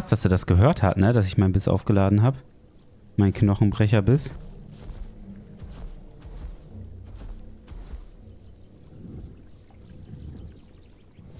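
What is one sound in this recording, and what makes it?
A large crocodile's heavy feet thud softly on the ground.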